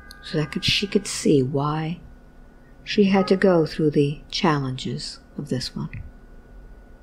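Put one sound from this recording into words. A woman speaks calmly and softly into a close microphone.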